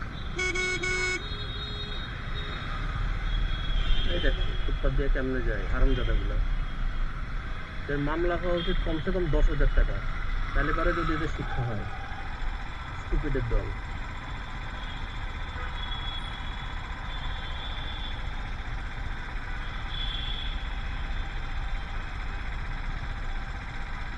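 Motorcycle engines rumble nearby in slow street traffic.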